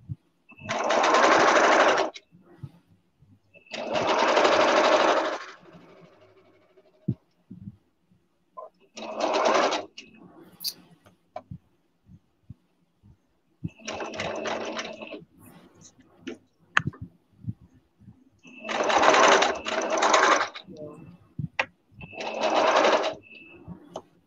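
A sewing machine runs in short bursts.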